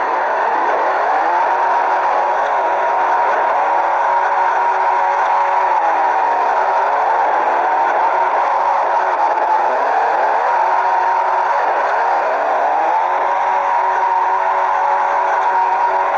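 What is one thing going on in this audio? Tyres screech steadily as a car drifts.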